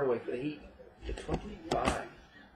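A hard plastic card case taps and clicks as it is handled.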